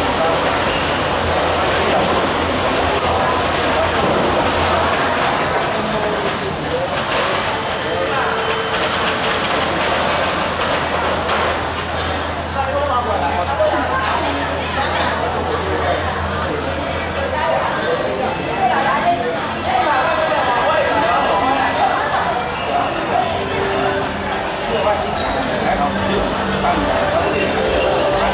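Rain patters steadily on the street.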